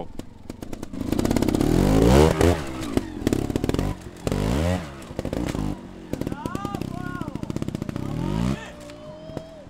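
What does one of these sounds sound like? A trial motorcycle engine revs and sputters as the bike climbs over rocks.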